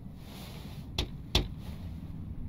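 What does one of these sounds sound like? A fist knocks twice on a wooden door.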